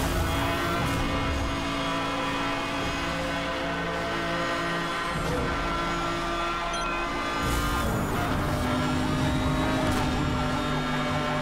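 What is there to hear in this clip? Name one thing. A racing car engine roars at high speed, its pitch dropping with a gear change and climbing again.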